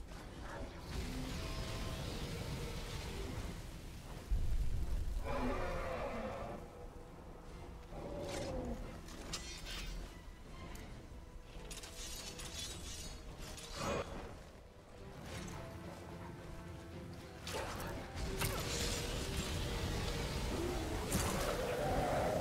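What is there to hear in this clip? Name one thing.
Flames roar and crackle in bursts.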